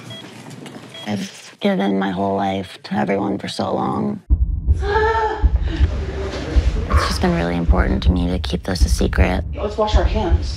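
A woman speaks softly and emotionally, close by.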